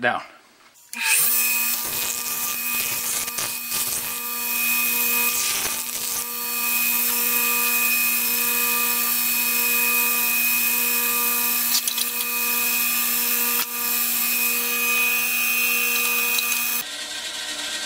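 A bench grinder motor hums steadily.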